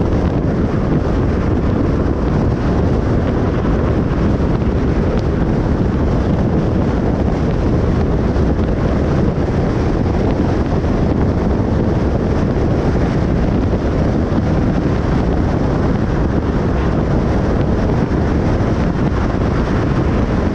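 Tyres roar steadily on a highway, heard as a low rumble from inside a moving car.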